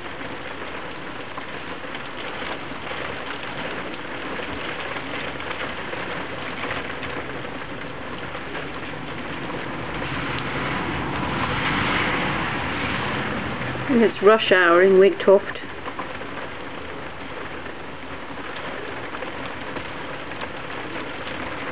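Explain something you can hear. Heavy rain pours down and patters against a window.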